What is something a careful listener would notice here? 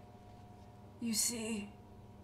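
A young woman asks a short question quietly.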